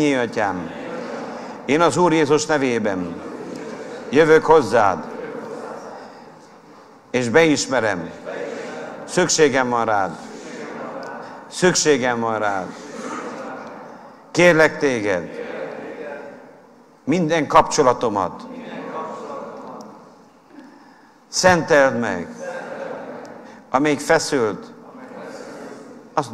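A middle-aged man preaches forcefully into a microphone, in bursts with pauses, in a reverberant hall.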